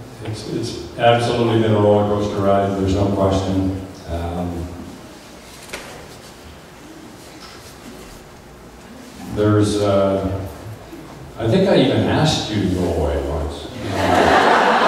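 A man sings loudly into a microphone in an echoing hall.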